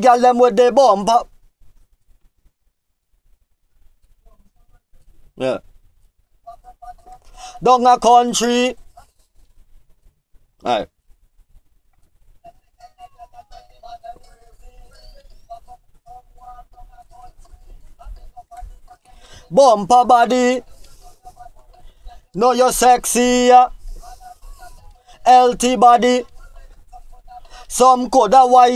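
A man sings close into a microphone in short phrases.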